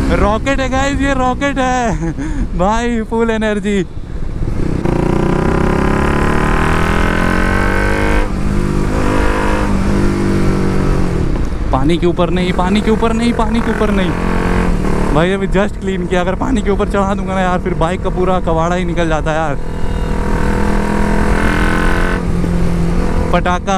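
A motorcycle engine hums steadily while cruising.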